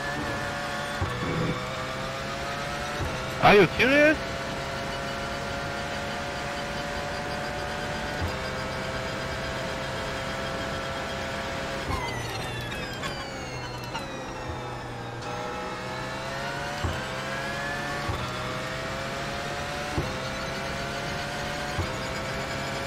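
Gear shifts knock sharply.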